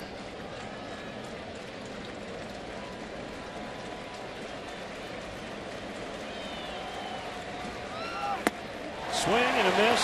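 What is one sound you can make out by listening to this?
A large crowd murmurs steadily.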